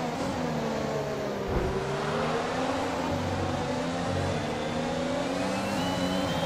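Another racing car engine whines close by.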